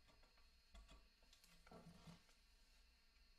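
A man handles a brass horn with soft knocks.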